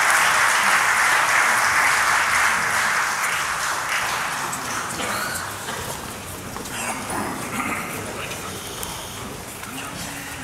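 An audience applauds loudly in a large hall, then the clapping fades.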